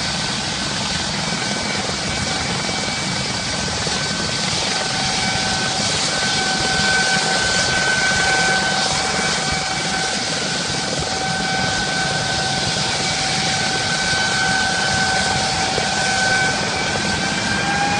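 A helicopter's rotor blades whoosh and thud steadily outdoors.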